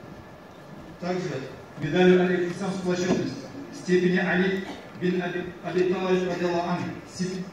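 A man reads out through a microphone in a large echoing hall.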